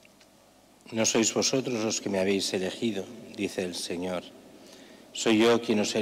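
An elderly man speaks calmly and solemnly into a microphone in an echoing room.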